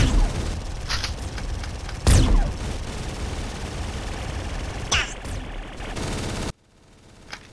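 Gunfire rattles rapidly in quick bursts.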